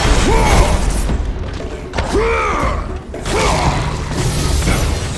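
Blades slash and strike with heavy thuds.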